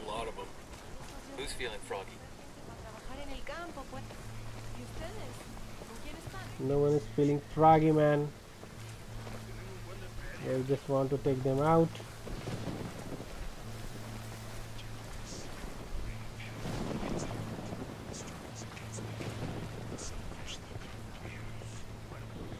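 Footsteps crunch softly over dirt and grass.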